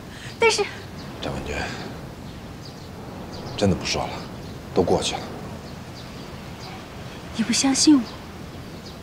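A young man speaks quietly and hesitantly, close by.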